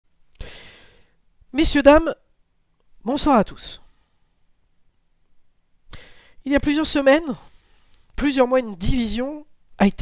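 A man speaks calmly and close into a headset microphone, in short phrases with pauses.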